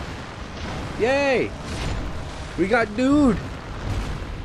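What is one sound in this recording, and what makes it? Monsters let out high, wavering screeches.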